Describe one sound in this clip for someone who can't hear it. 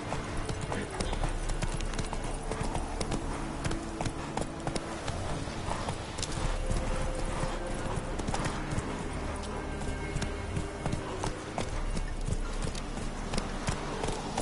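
A horse's harness and gear rattle and clink.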